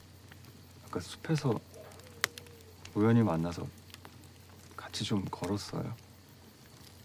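A young man speaks calmly nearby.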